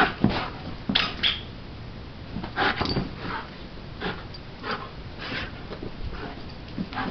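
A dog's paws scrabble and thump on the floor as it plays.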